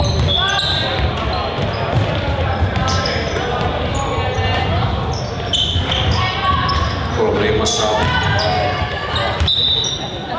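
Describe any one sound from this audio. Young girls shout and call out to each other.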